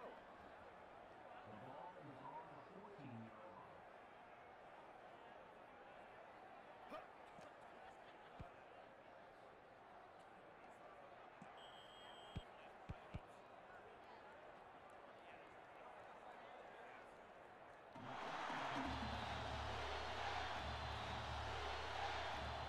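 A large stadium crowd murmurs and cheers steadily, growing louder near the end.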